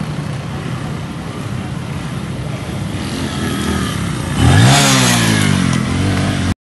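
A motorbike engine approaches, roars past close by and fades.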